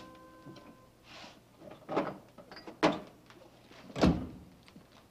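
A refrigerator door opens and thumps shut.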